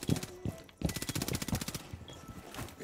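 A rifle fires in rapid bursts close by.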